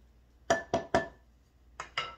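A wooden spoon knocks against the rim of a metal pot.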